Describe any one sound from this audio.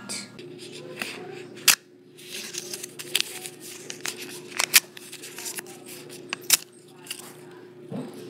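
Paper crinkles and rustles as it is folded close by.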